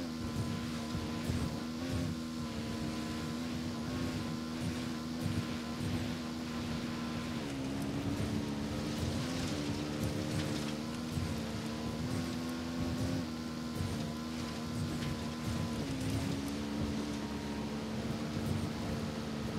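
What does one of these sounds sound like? Tyres crunch over rough, rocky ground.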